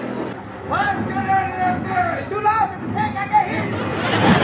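A man speaks loudly and excitedly, close by.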